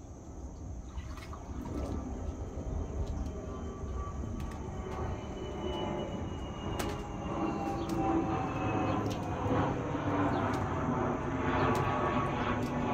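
A dog splashes and paws at water in a small pool.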